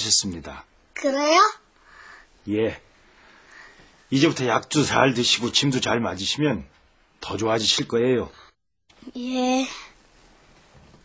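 A young boy speaks softly.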